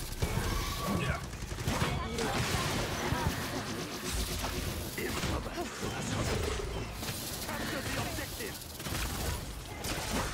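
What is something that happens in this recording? Energy weapons fire and blast in a video game.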